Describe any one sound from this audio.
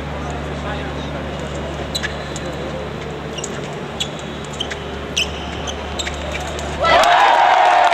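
Steel blades clash and click sharply as two fencers duel.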